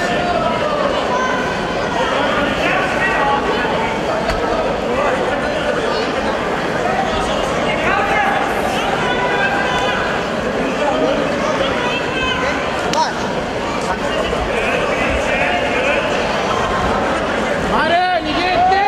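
A crowd chatters and shouts throughout a large echoing hall.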